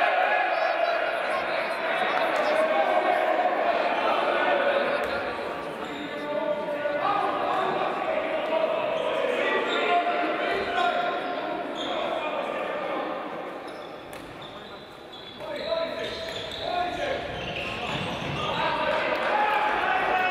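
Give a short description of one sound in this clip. Men shout and call out to each other in a large echoing hall.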